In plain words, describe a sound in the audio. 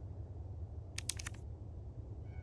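A photograph is flipped over with a short papery rustle.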